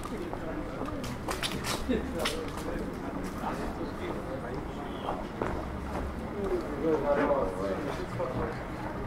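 Men and women chat at nearby outdoor tables.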